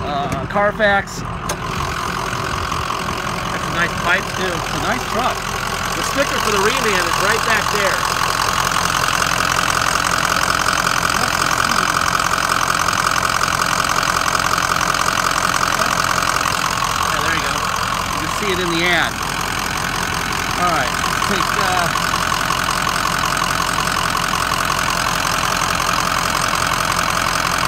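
A diesel engine idles with a steady rumble.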